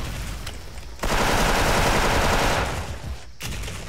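A rifle fires a rapid burst of shots up close.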